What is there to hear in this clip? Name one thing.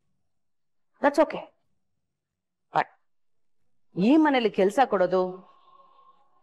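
A woman speaks tensely and with emotion, close by.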